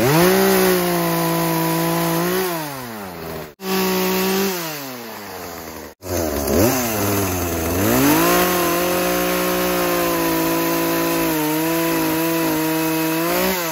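A chainsaw engine roars, revving up and dropping to idle several times.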